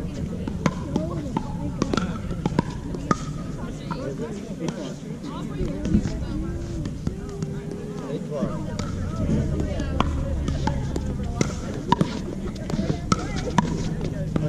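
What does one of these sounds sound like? Paddles hit a plastic ball with sharp hollow pops, back and forth.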